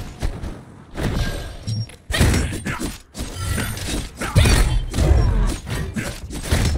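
Magic blasts burst and crackle in quick succession.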